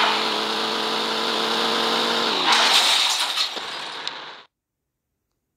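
A car engine drones at high speed.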